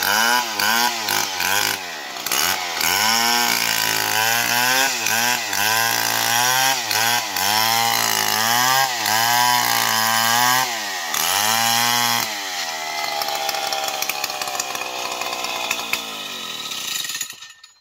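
A chainsaw engine revs up and down loudly, then settles into a steady idle.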